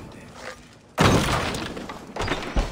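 Wood smashes and splinters with a loud crack.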